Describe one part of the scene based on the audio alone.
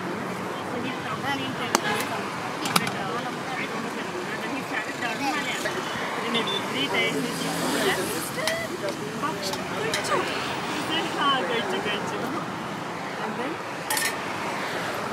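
A metal spoon scrapes and clinks against steel dishes.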